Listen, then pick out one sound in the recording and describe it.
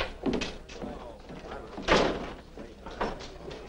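Boots thud on a wooden porch.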